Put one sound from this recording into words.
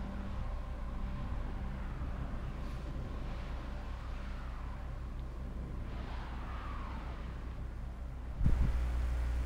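A spaceship engine hums and whooshes as it flies past.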